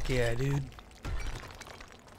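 A pickaxe strikes rock with a heavy crunch.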